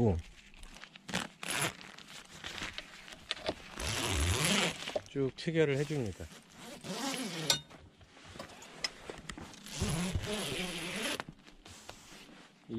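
Tent fabric rustles and flaps.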